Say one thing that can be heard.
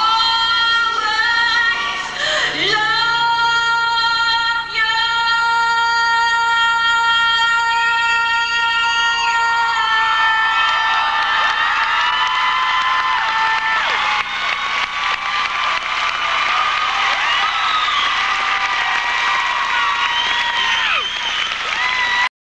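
A young woman sings into a microphone with long held notes.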